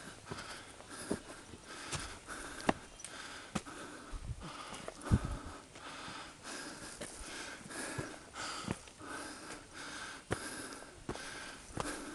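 Footsteps crunch steadily on snow and loose stones.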